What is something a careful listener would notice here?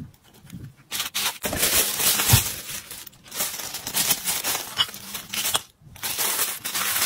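Tissue paper rustles as hands fold it.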